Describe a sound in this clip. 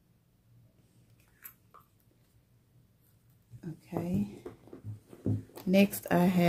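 Small objects click and rustle as a handbag is handled.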